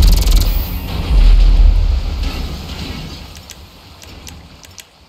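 An explosion booms and rumbles, then slowly fades.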